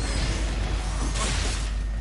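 Blades clash and slash in a video game sword fight.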